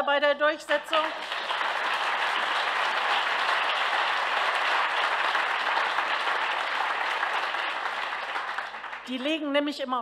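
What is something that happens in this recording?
A large audience claps and applauds.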